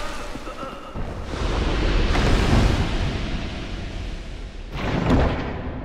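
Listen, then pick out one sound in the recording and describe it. Armoured footsteps clank on a stone floor.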